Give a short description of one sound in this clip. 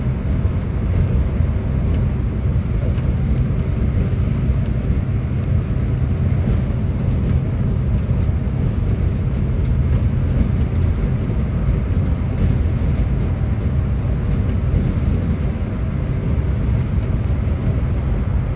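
A bus engine drones steadily from inside the cabin.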